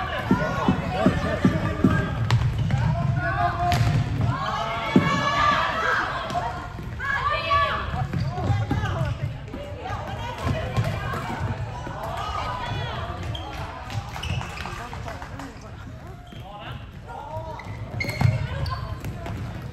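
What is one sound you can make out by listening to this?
Shoes squeak on the hard floor.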